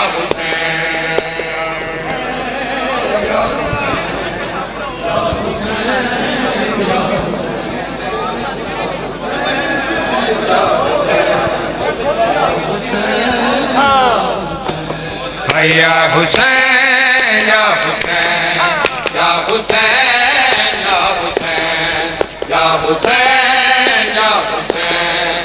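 A young man chants loudly into a microphone.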